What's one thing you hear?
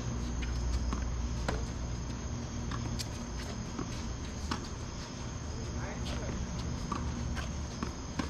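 Sneakers squeak and shuffle on a hard court.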